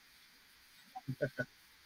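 A woman laughs briefly over an online call.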